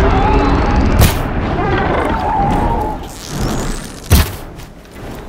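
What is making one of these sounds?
A bow fires an arrow with a sharp snap.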